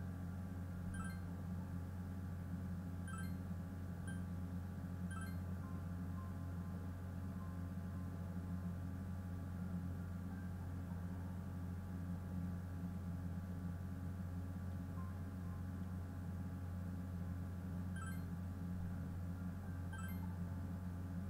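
Short bright chimes sound as menu options are picked.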